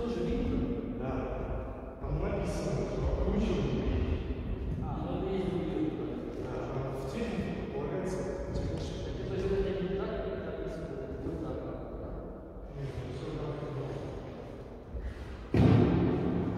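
A man talks calmly, explaining, in a large echoing hall.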